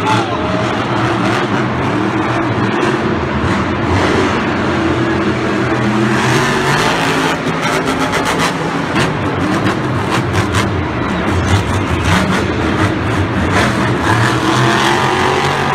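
A monster truck engine roars and revs loudly.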